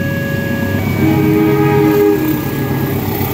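A train horn sounds loudly.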